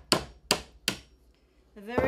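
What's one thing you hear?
A woman hammers a tool into a coconut with sharp knocks.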